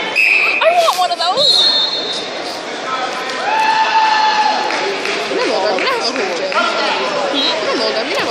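Sneakers squeak on a wrestling mat.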